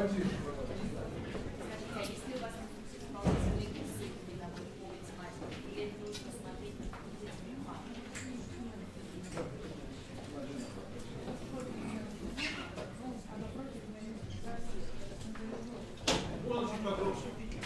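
An elderly man speaks calmly to an audience.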